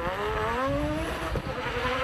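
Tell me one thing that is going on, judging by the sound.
A rally car exhaust pops and bangs.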